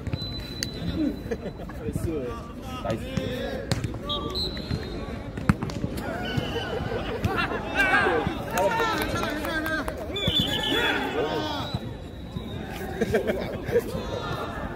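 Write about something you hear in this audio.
Many young people shout and chatter outdoors at a distance.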